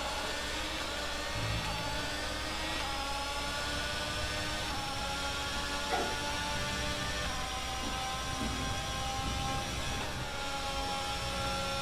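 A racing car engine whines at high revs, shifting gears as it speeds up.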